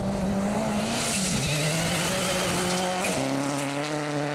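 Gravel sprays and hisses under spinning tyres.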